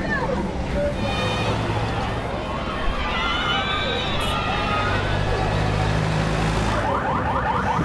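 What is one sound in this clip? A truck engine rumbles as it drives past.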